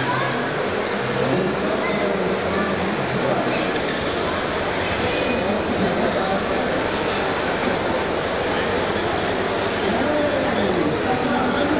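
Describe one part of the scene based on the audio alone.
A large crowd of men and women chatters loudly in a big echoing hall.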